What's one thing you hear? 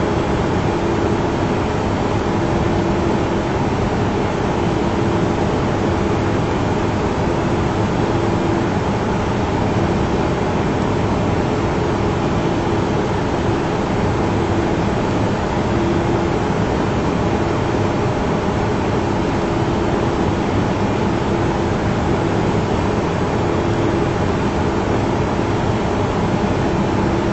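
Jet engines roar steadily around a cockpit in flight.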